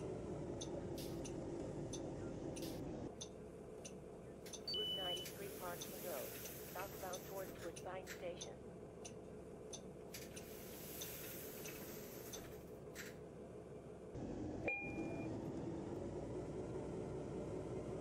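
A bus engine hums loudly while the bus drives.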